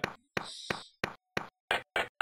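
Quick footsteps patter in a video game.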